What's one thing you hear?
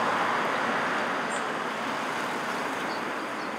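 A car towing a trailer drives past on a road and fades away.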